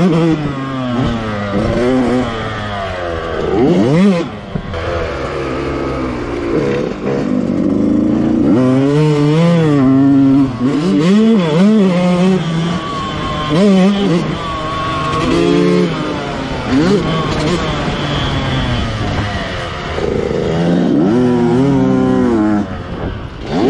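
Another dirt bike engine buzzes nearby.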